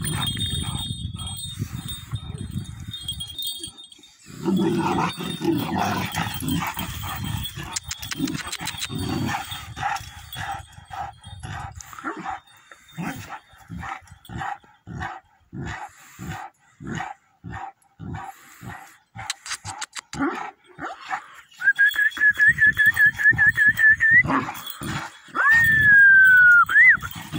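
A metal chain clinks and rattles as a dog moves about.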